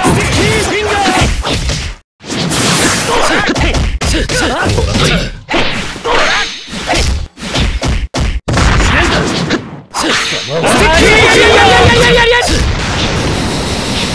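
Punches and kicks land with sharp thuds and cracks.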